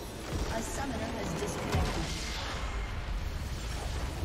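A nexus explodes with a deep rumbling blast.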